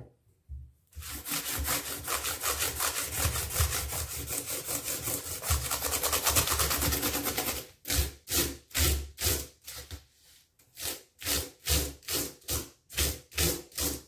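A small stiff brush scrubs briskly across plastic keyboard keys.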